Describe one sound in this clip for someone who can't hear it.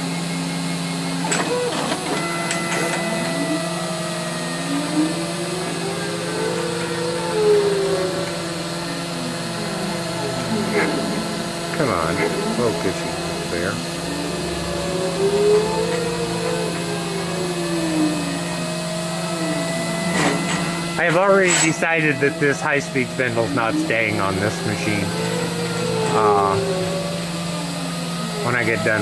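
A small cutter scrapes and chatters against metal.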